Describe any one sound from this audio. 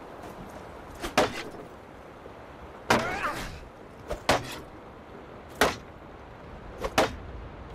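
Wooden weapons clack sharply against each other in repeated blows.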